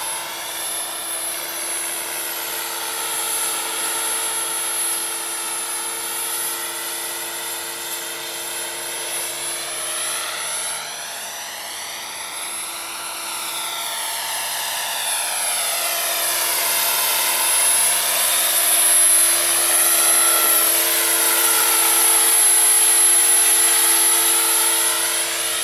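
A model helicopter's motor whines steadily overhead, rising and falling in pitch as it flies past.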